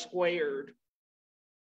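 A man talks over an online call.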